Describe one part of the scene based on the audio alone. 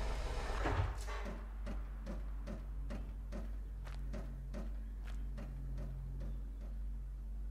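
Footsteps tap at a steady pace.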